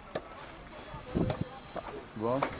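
A shovel scrapes and digs into sandy soil.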